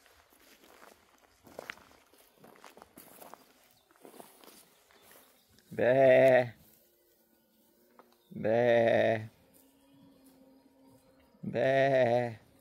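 Sheep tear and munch grass.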